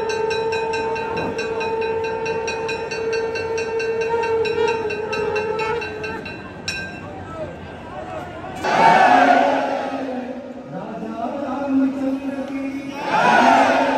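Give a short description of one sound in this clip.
A man chants in a sustained tone over a loudspeaker.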